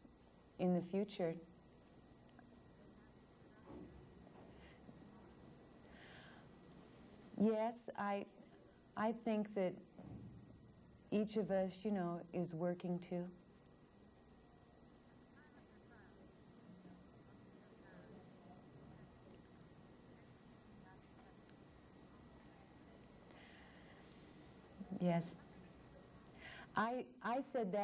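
A young woman speaks close to a microphone in short bursts with long pauses.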